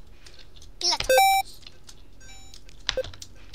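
A short electronic beep sounds as a game character jumps.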